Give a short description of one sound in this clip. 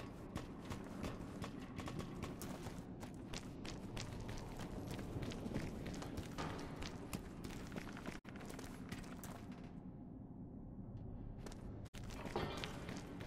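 Light footsteps hurry across a hard floor.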